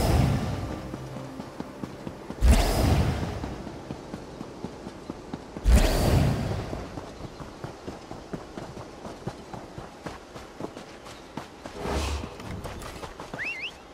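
Footsteps patter quickly as a figure runs.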